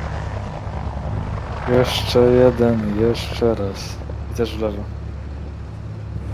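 An armoured vehicle's engine rumbles low and steady nearby.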